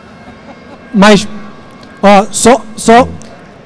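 A woman speaks loudly through a microphone and loudspeakers in a large echoing hall.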